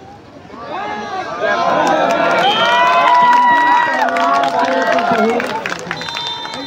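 A large crowd of men cheers and shouts outdoors.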